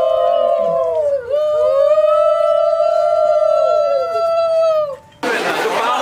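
Several women ululate loudly close by.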